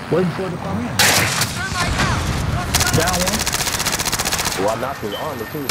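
Rapid gunshots crack loudly.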